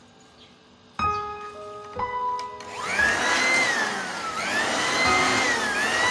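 A machine starts up and runs with a steady whirring hum, its pitch rising and falling.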